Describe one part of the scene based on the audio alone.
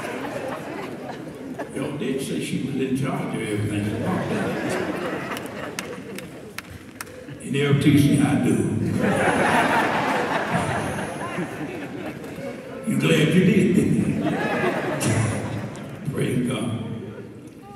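A man preaches with fervour through a microphone in a large echoing hall.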